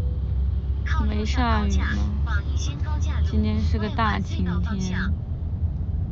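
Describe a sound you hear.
A young woman speaks close by in a soft, muffled voice.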